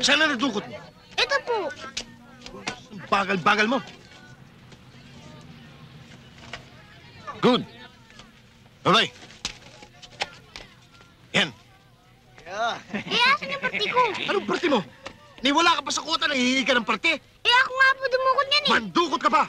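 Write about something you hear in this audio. Men talk with animation close by.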